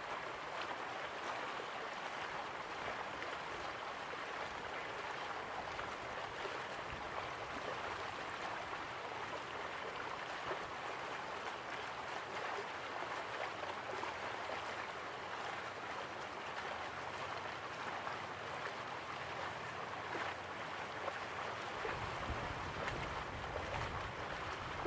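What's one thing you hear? Waterfalls rush and splash steadily in the distance.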